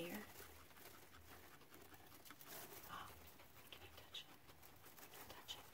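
A guinea pig chews hay with quick crunching bites.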